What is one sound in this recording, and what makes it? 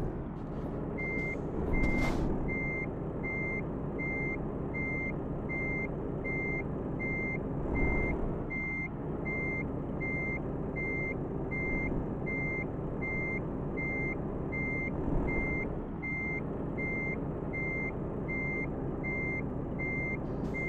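A reversing alarm beeps in a steady, even rhythm.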